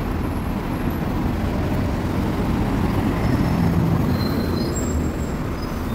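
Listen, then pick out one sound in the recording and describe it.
A heavy truck drives past with a low engine roar.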